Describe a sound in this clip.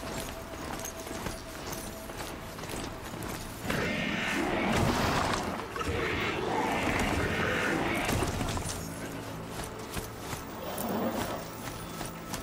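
Heavy mechanical footsteps thud steadily.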